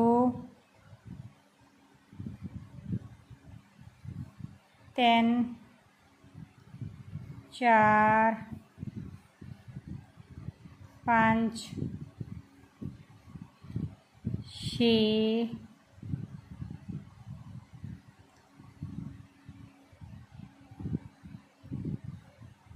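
A crochet hook softly pulls yarn through stitches.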